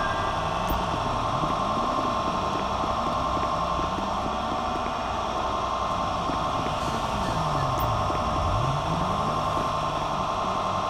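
City traffic hums steadily nearby.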